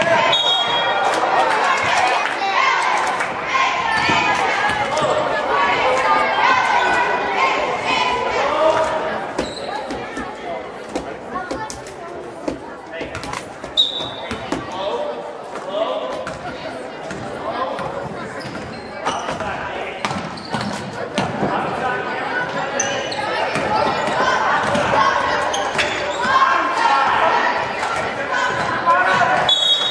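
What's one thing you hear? A crowd of spectators chatters and cheers nearby.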